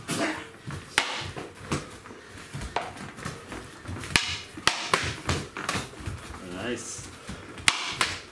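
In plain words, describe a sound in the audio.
Sticks strike padded gloves and pads with sharp smacks.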